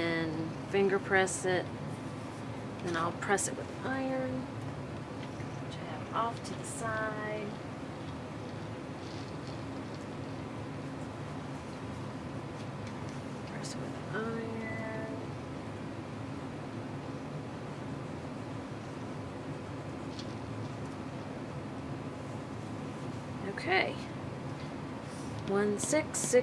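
Cotton fabric pieces slide and rustle on a cutting mat.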